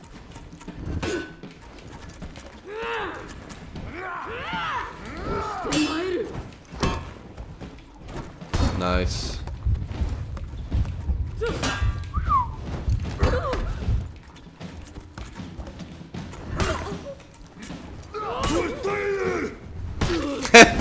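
Metal weapons clash and clang sharply.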